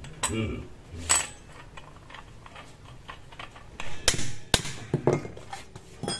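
Metal tools clink and clatter.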